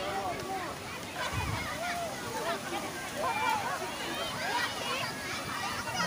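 Children shriek in a pool.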